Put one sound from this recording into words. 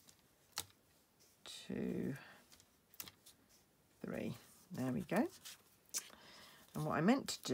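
Metal tweezers tap and scrape softly on paper.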